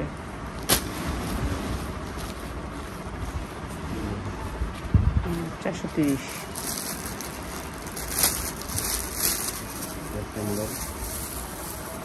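Silky cloth rustles as hands spread and smooth it.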